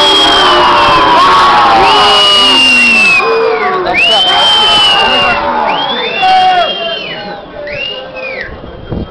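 A large stadium crowd chants and sings loudly all around, outdoors.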